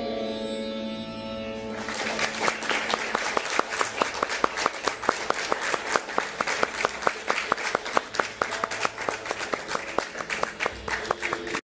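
A woman sings a long, held melody close to a microphone.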